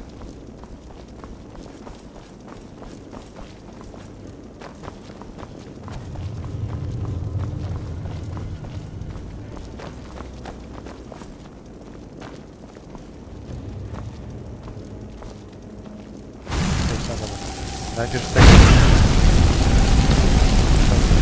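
Magic flames crackle softly.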